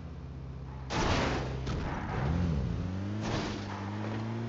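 A vehicle crashes with a loud thud against a fence.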